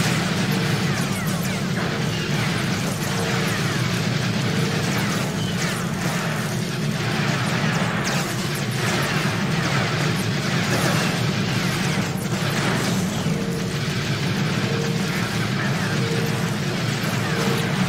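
Game laser blasts fire in quick bursts.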